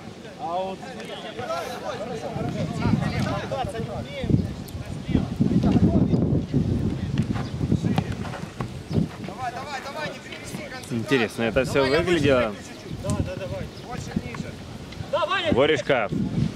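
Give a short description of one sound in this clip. Men shout and call out across an outdoor football pitch.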